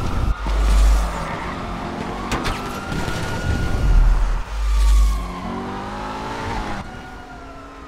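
A sports car engine roars and revs hard.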